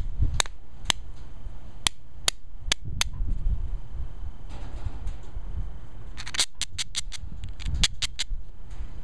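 Small stones click and tap against each other.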